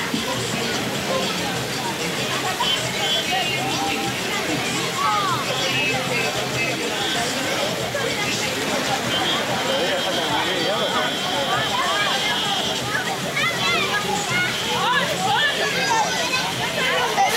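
A crowd of children and adults chatters and shouts outdoors at a distance.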